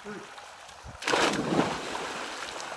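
A man jumps into a pool with a loud splash.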